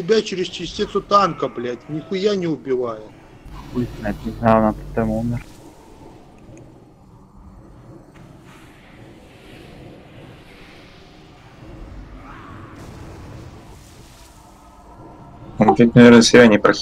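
Spell effects whoosh and crackle in a battle.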